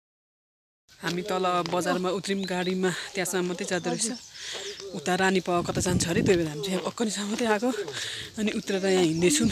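A middle-aged woman talks with animation close to a phone microphone.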